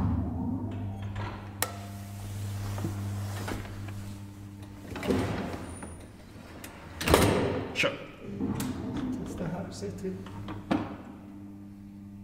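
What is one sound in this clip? An elevator motor hums steadily.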